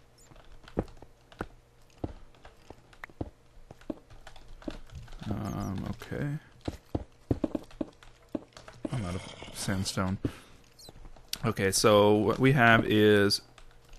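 Stone blocks crack and crumble as they are broken, in short taps.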